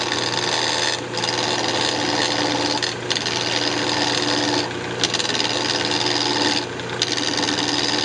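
A gouge scrapes against spinning wood in bursts.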